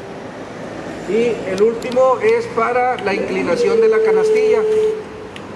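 Control switches click several times.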